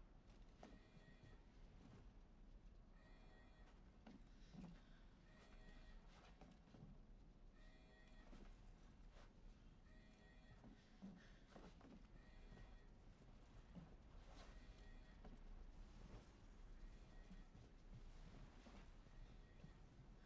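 Footsteps thud on wooden floors and stairs at a steady walking pace.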